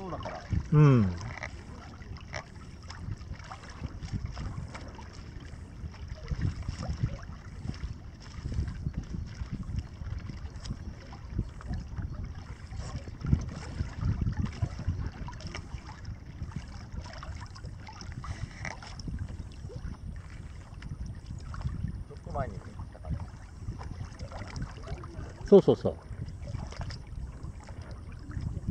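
Water laps and splashes softly against a board.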